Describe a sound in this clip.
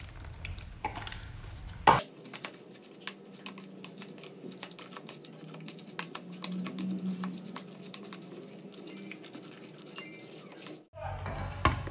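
A plastic spatula stirs and scrapes around a metal bowl.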